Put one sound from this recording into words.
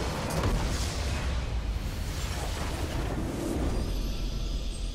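A structure explodes with a loud blast.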